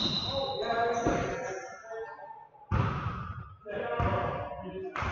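Men shout and call out in a large echoing gym.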